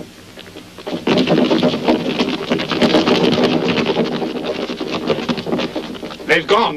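A group of men rush in with loud clattering footsteps.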